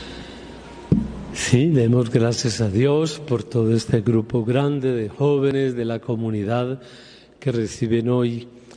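A man chants into a microphone, his voice carried by loudspeakers through a large echoing hall.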